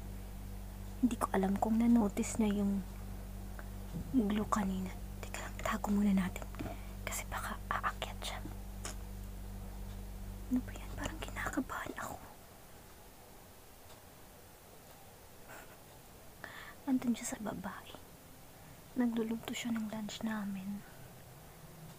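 A young woman talks close to the microphone in short bursts.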